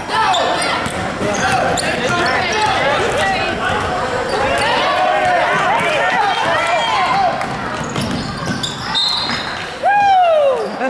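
Sneakers squeak sharply on a wooden gym floor.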